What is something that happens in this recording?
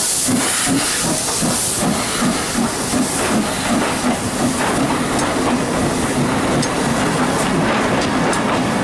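A steam locomotive chuffs rhythmically as it pulls away.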